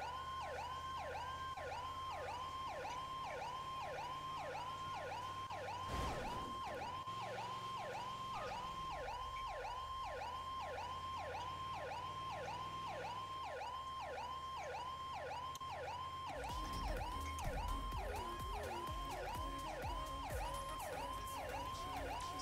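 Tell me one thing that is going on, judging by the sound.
An ambulance siren wails in a fast, repeating rising and falling pattern.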